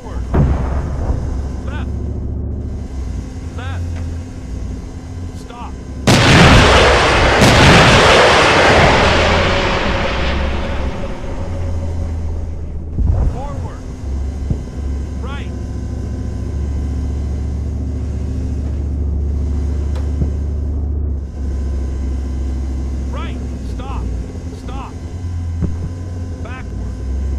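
A heavy vehicle engine rumbles low and steady.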